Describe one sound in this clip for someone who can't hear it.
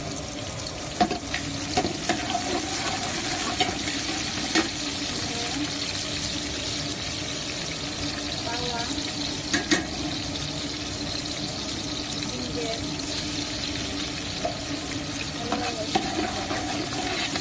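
A metal spoon scrapes and clinks against a metal pot.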